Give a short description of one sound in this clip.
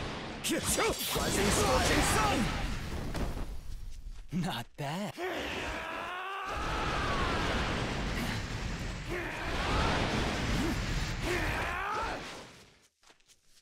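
Swords clash and slash with fiery whooshes.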